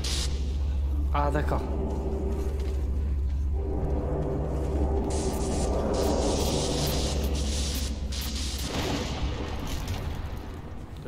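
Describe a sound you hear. A gun fires in loud roaring bursts.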